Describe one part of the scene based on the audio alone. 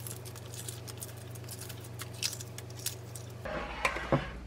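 Eggshell crackles as it is peeled off a boiled egg.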